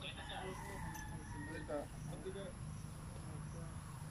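A broom sweeps across a tiled floor.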